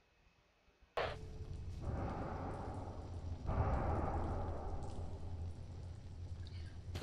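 Footsteps tread on a hard floor in an echoing room.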